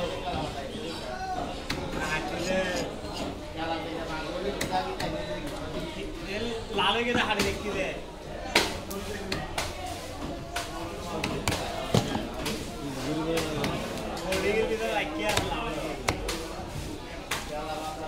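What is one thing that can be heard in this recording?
A heavy knife chops with sharp knocks on a wooden block.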